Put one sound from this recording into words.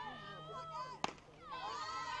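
A softball smacks sharply into a catcher's mitt.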